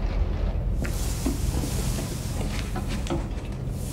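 A clothes hanger scrapes and clinks on a rail.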